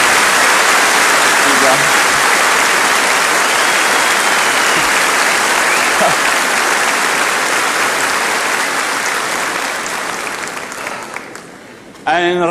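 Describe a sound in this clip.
A large audience applauds loudly and then fades away.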